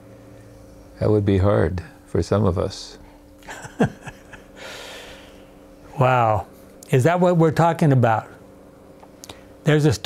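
An elderly man speaks calmly into a microphone, close by.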